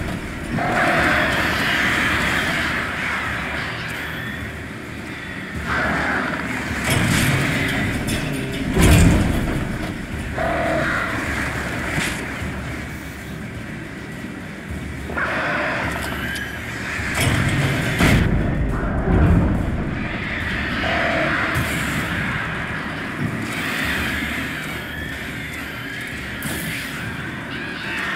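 A flock of crows screeches and flaps in a swarm.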